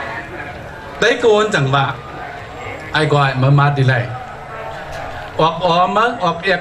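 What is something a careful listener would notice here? A man speaks forcefully into a microphone over a loudspeaker, echoing outdoors.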